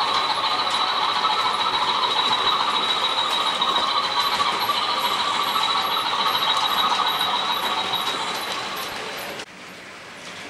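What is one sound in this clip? Model freight wagons rattle along a track with a steady high squeal.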